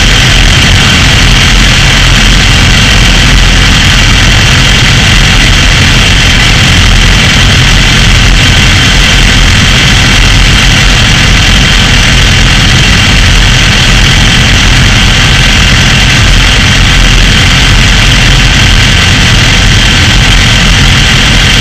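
Several motorcycle engines idle loudly and steadily close by.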